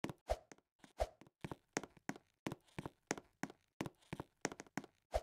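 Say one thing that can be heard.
Footsteps of a game character thud quickly and evenly.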